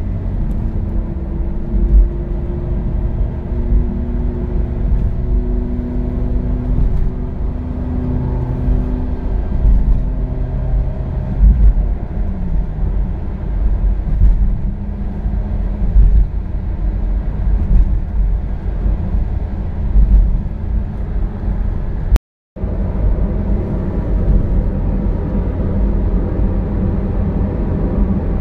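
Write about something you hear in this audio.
A car's engine hums steadily from inside the cabin.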